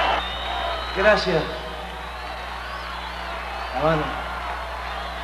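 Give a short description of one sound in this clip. A man sings briefly into a microphone.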